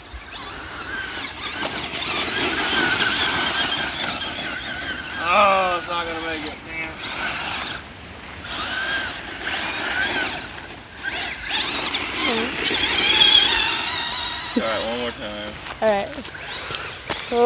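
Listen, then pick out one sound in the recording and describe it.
Tyres of a toy car crunch and scatter gravel.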